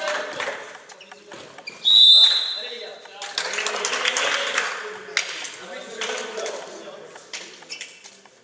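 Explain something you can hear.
A volleyball thumps off players' arms and hands in an echoing hall.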